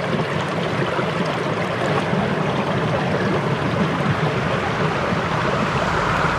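A stream of water rushes and gurgles over rocks.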